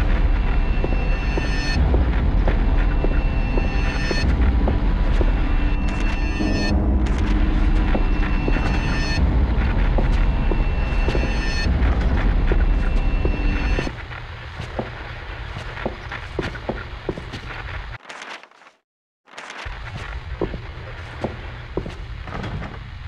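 Footsteps clang on a metal grate.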